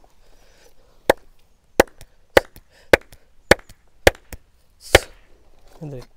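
A man slaps another man's back with sharp, quick smacks.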